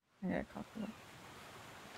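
A young woman speaks briefly into a microphone.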